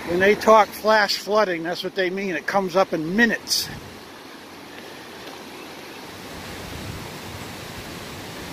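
A swollen river rushes steadily below.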